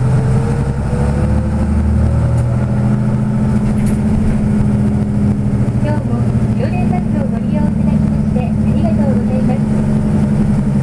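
Traffic rushes past on a busy highway.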